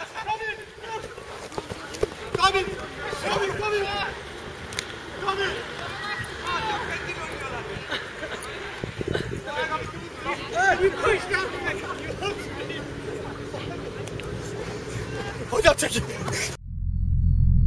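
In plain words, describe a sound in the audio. Men shout and call out to one another outdoors.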